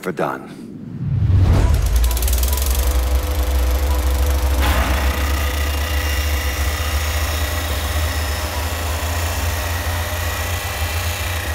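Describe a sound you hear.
A heavy machine rumbles with a deep, steady drone.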